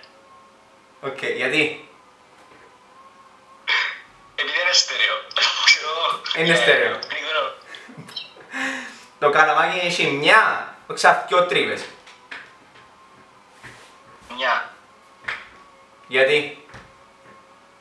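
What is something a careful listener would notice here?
A young man talks with animation over an online call.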